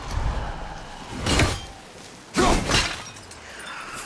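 A heavy axe strikes with sharp, loud impacts.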